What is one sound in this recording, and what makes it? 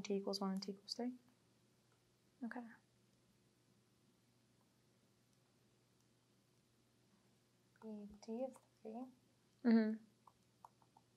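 A young woman speaks calmly in short phrases with long pauses.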